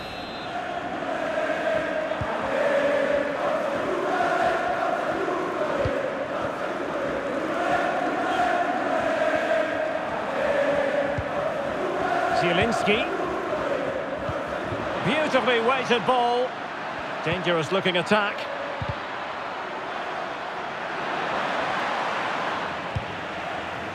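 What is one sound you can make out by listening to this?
A large stadium crowd chants and cheers steadily.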